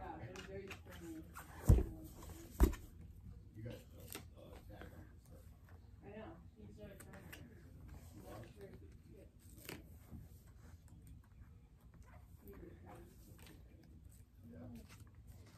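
Paper and small objects rustle and click in hands.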